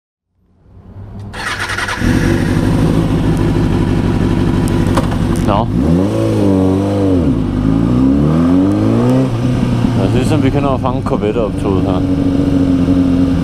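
A motorcycle engine idles, then revs up and down as the bike rolls off.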